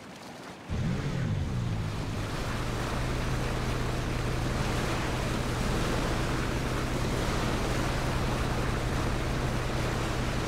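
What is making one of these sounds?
Water rushes against a speeding boat's hull.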